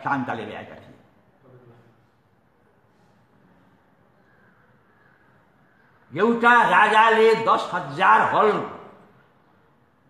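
An elderly man speaks loudly and with animation into a microphone, with pauses.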